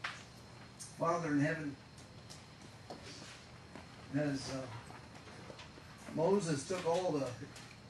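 A man speaks into a microphone over loudspeakers, in short phrases with pauses.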